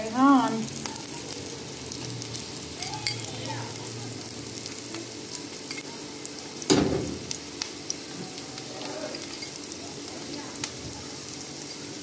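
A metal spoon clinks against a glass bowl.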